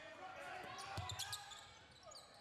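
A basketball thuds against the backboard and rim.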